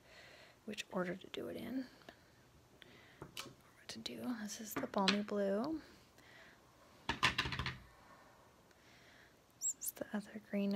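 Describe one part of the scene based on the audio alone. Plastic stamp blocks click and clack against a tabletop.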